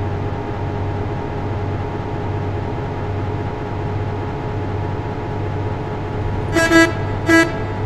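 A diesel bus engine drones while cruising.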